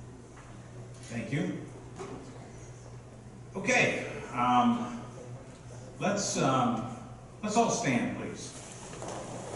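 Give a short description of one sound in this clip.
A man speaks with animation through a microphone.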